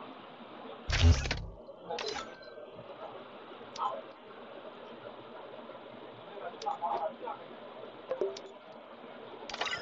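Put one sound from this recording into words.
Short electronic menu clicks and chimes sound.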